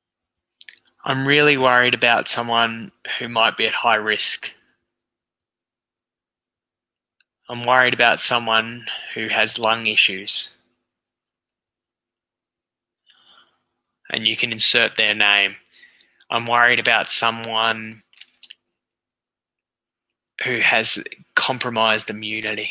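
A middle-aged man speaks calmly and close through a headset microphone, in short bursts with pauses.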